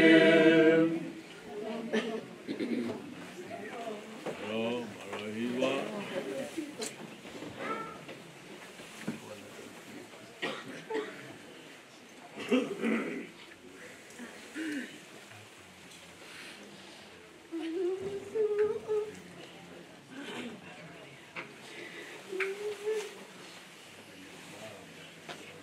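A woman sobs and wails quietly nearby.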